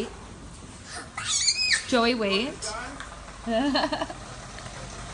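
A toddler boy shouts excitedly.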